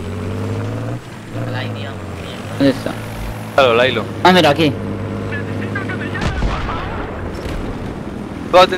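A helicopter engine hums steadily.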